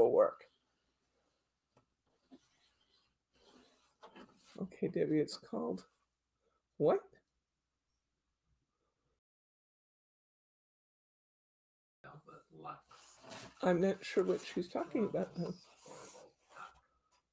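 Paper rustles as it is folded and handled.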